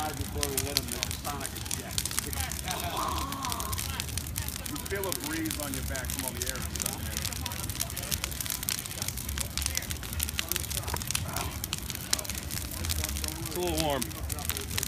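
A fire roars with a low rushing sound.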